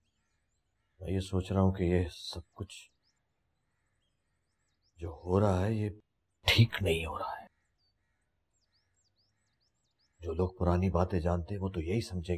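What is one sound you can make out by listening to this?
An older man speaks in a pained, troubled voice nearby.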